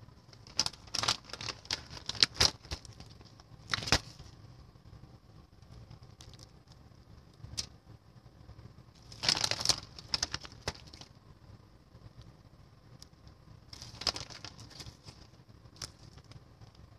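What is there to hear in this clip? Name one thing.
Aluminium foil crinkles and rustles close by.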